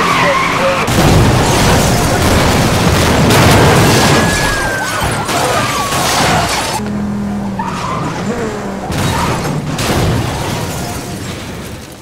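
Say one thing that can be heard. A car crashes with a loud metallic bang.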